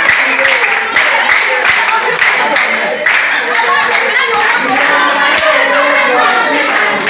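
A group of women sing loudly together.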